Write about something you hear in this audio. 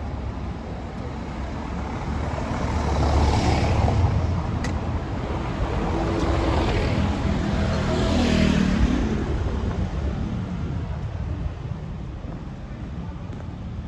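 A street hums outdoors with distant traffic.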